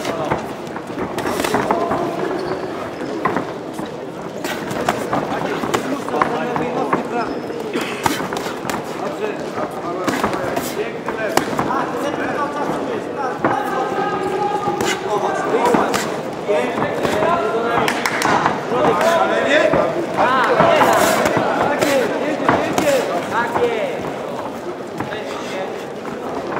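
Boxing gloves thud against each other and against bodies in quick bursts.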